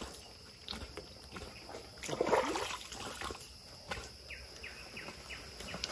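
A man rustles through dry leaves and undergrowth.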